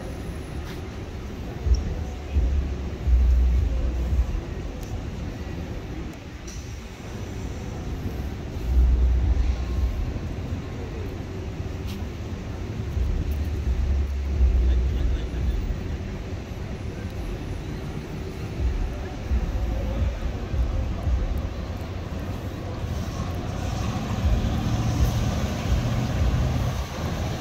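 Traffic hums along a nearby city street outdoors.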